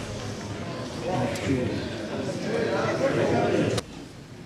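A crowd in a large hall cheers and claps.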